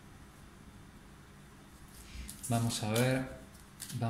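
Playing cards rustle as a deck is handled.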